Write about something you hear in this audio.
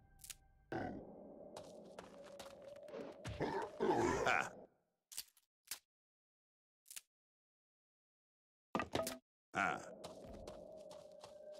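Heavy footsteps crunch through grass with clinking armor.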